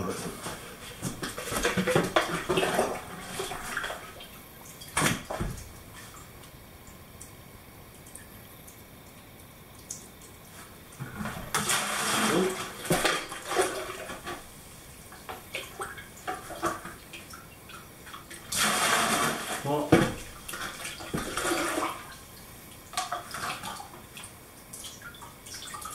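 A plastic cup scrapes and knocks against a bucket.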